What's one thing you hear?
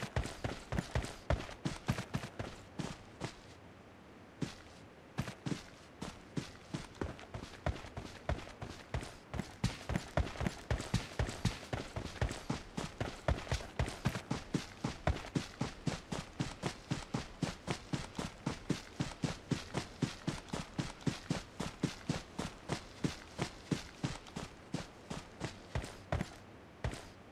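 Quick footsteps run over grass and dry ground.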